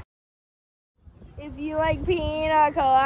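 A boy talks cheerfully close by.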